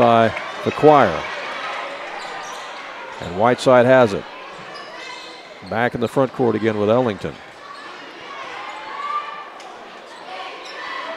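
A crowd murmurs in a large echoing gym.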